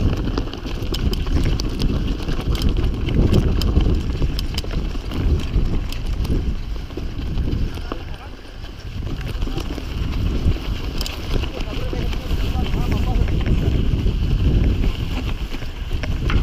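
A bicycle chain and frame clatter over bumps.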